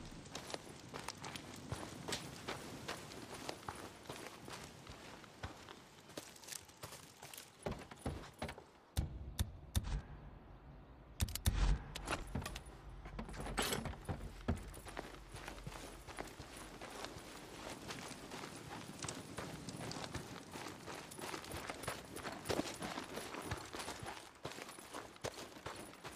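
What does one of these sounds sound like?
Footsteps crunch steadily on gravel and wooden boards.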